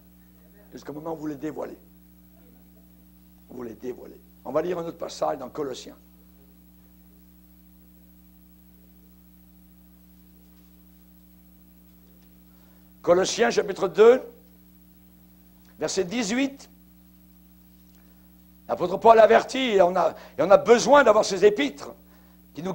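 A middle-aged man speaks into a microphone with emphasis, in bursts with long pauses.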